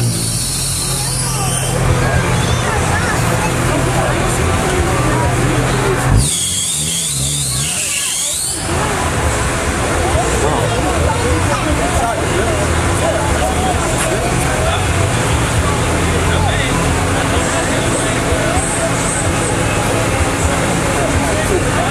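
A group of young men chat nearby outdoors.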